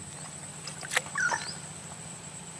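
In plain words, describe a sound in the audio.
A float plops into still water.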